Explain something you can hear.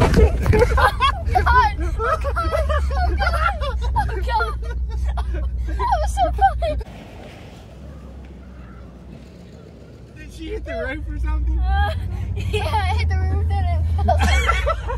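A young man laughs and shouts with excitement.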